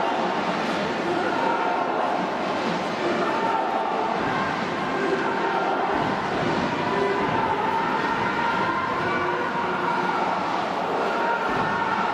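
A brass band plays loudly.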